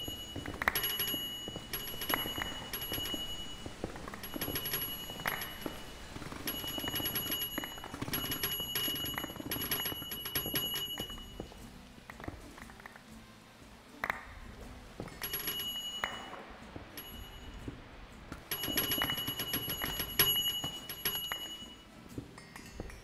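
Stone blocks crack and break rapidly in repeated bursts.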